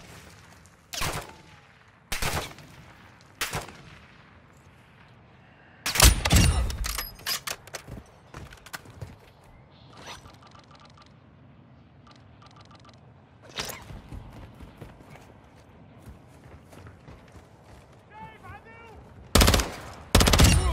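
Loud rifle shots ring out one at a time, with echoes trailing after.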